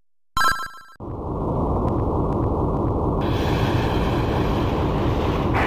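A deep game rumble roars steadily.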